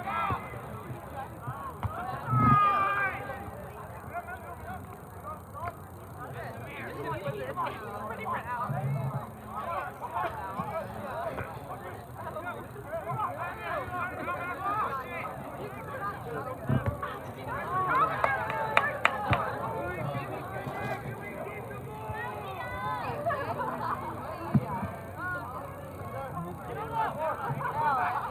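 Young players shout and call to each other across an open outdoor field.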